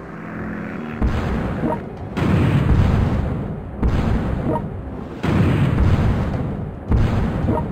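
Naval guns fire in heavy, booming bursts.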